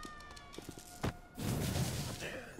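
A heavy blow lands with a loud thud.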